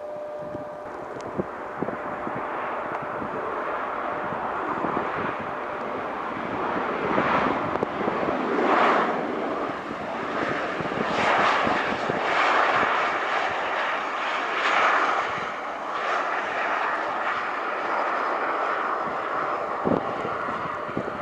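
A Boeing 737-800 jet airliner roars as it rolls out along the runway after landing.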